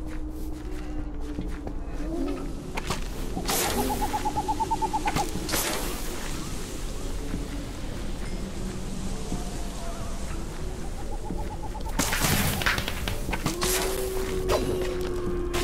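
A sword swishes through the air.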